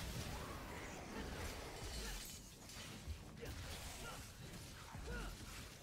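Sharp blows and metallic slashes strike in quick succession.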